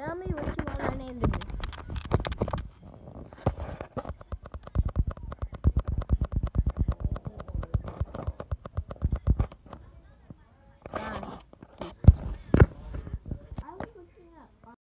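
A boy talks close to a phone microphone.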